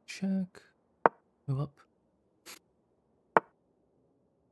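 A short, sharp click sounds twice.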